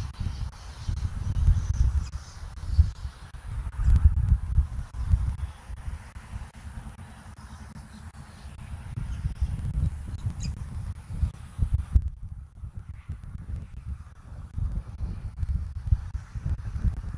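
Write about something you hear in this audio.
Pine needles rustle in the wind.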